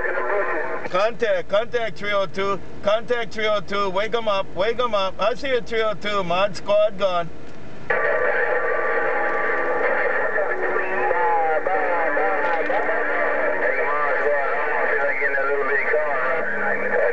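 A man speaks rapidly through a crackly radio loudspeaker.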